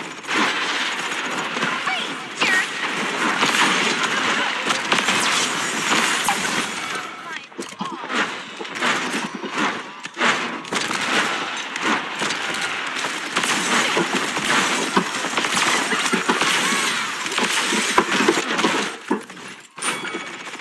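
Gunfire and blasts from a game crackle rapidly.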